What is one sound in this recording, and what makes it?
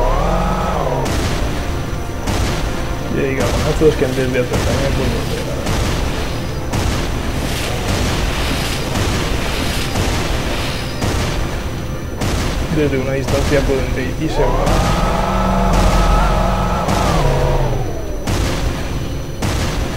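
Laser shots fire in quick bursts with sharp zaps.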